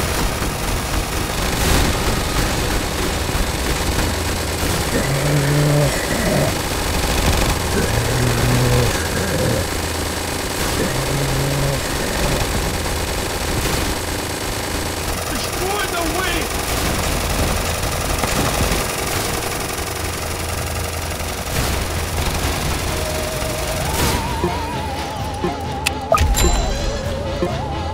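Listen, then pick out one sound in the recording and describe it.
Game towers fire rapid gunshots and blasts.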